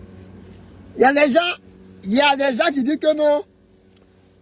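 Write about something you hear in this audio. A young man groans and whimpers in distress.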